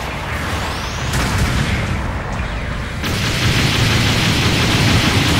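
A giant robot's thrusters roar steadily and grow louder.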